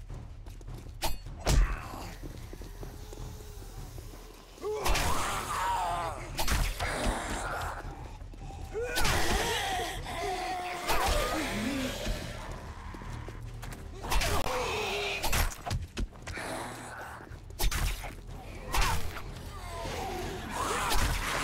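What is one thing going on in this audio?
A knife strikes flesh with wet thuds.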